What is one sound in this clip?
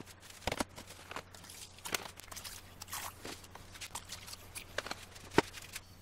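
Liquid pours from a bottle into a plastic tray.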